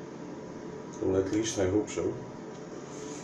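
A young man speaks briefly and close by, in a small echoing room.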